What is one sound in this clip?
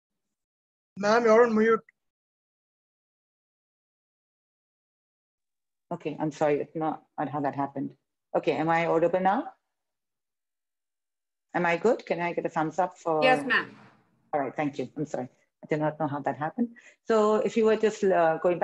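A woman speaks calmly through an online call.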